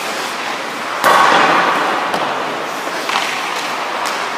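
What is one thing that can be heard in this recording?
Ice skates scrape sharply across the ice.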